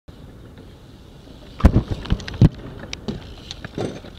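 Bike tyres roll over concrete.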